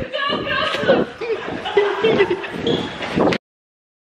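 A young man laughs close to the microphone.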